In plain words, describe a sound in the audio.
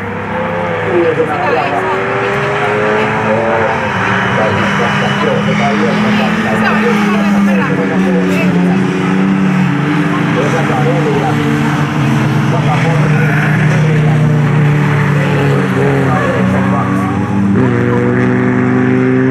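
Several racing car engines roar and whine as the cars speed around a track.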